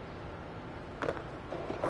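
A skateboard lands with a sharp clack.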